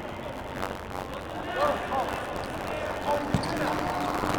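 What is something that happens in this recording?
A ball is kicked with dull thuds in a large echoing hall.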